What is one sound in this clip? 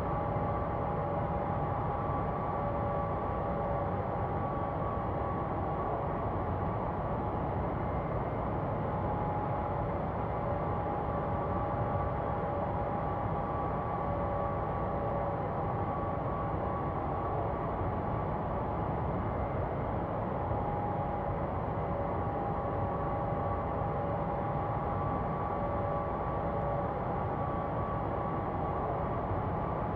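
Jet engines drone steadily as an airliner flies.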